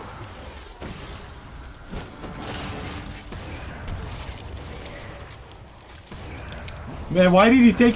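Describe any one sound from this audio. Magic spell effects whoosh and crackle in a video game.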